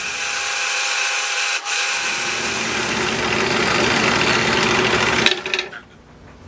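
A scroll saw buzzes loudly as it cuts through wood.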